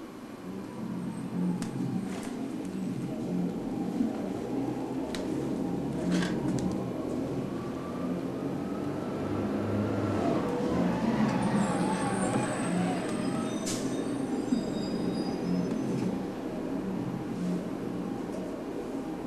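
Gloved hands rustle and rub against cloth close by.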